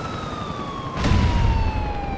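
An explosion booms at a distance.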